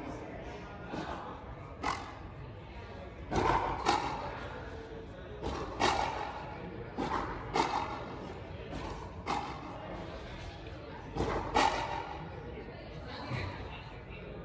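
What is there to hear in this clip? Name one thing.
A ball smacks off rackets and a wall again and again, echoing in a large open court.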